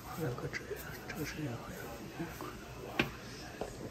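A power cord knocks and rubs as a hand handles it.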